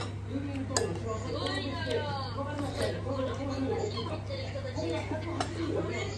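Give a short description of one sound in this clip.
A spoon scrapes rice from a bowl.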